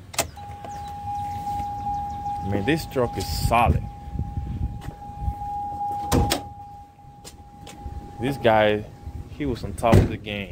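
A vehicle's door warning tone sounds steadily.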